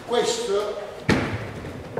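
A man thumps down onto a wooden floor.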